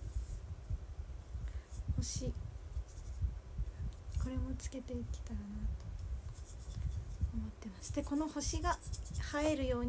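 A plastic container crinkles and rattles in a young woman's hands.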